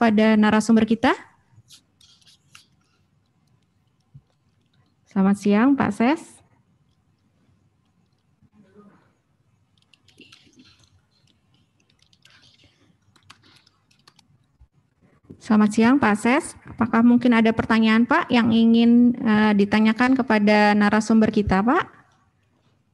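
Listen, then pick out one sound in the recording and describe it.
A young woman speaks calmly into a microphone, with pauses.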